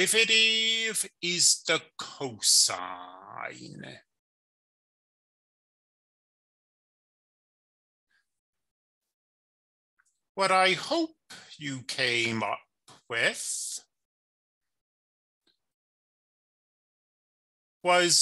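A young man explains calmly into a close microphone.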